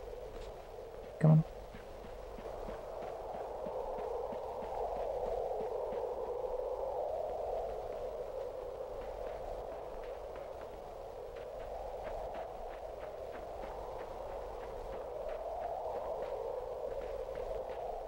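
Light footsteps patter steadily on soft ground.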